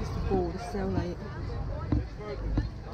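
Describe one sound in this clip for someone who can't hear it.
Dry bulb roots rustle under a hand.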